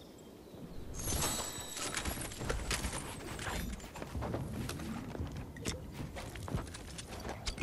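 Game building pieces snap into place with quick sharp clacks.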